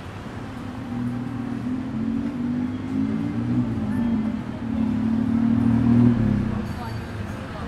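An engine rumbles loudly nearby, then fades.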